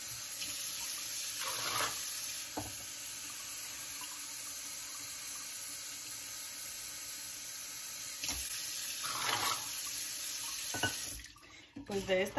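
Water pours steadily into a metal pot.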